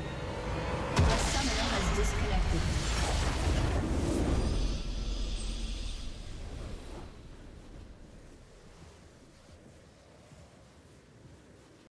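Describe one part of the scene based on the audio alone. A triumphant fanfare swells and then fades away.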